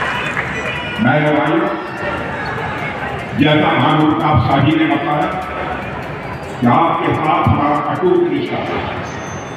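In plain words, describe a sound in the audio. A man speaks loudly over a loudspeaker in bursts.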